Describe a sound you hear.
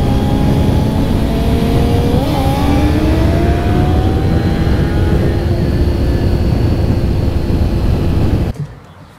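A motorcycle engine roars steadily up close as it rides along.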